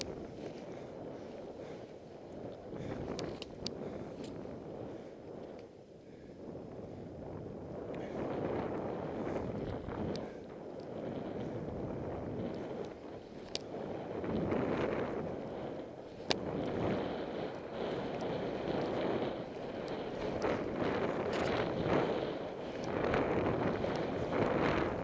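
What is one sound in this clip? Skis hiss and swish steadily through deep powder snow, growing louder at times.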